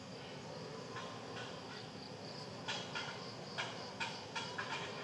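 A gorilla tugs at a wooden stump, making sharp knocks and creaks.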